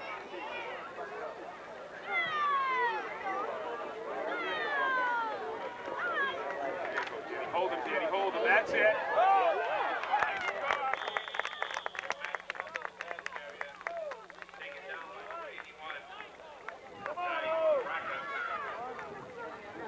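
Young children shout and call out nearby outdoors.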